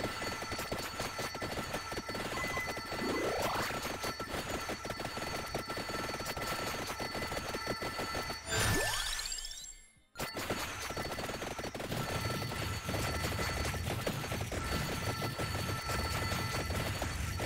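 Rapid video game firing and hit effects crackle constantly.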